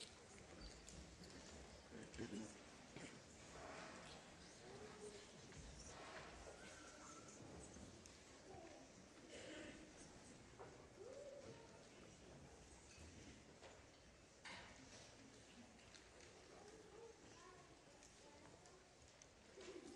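An audience murmurs quietly in a large hall.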